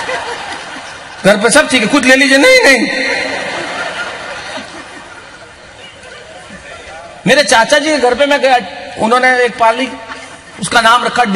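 An elderly man laughs heartily.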